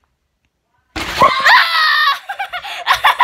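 A young boy screams close to the microphone.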